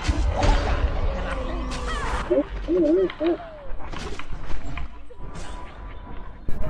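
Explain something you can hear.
Game spell effects whoosh and chime in short bursts.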